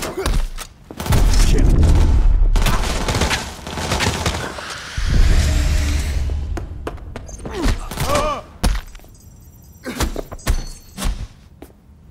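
Loud gunshots ring out in rapid bursts.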